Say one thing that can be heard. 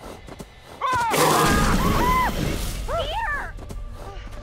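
A young woman speaks in a worried voice.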